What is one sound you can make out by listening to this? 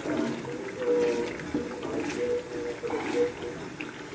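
A wooden spoon scrapes and stirs inside a metal pot.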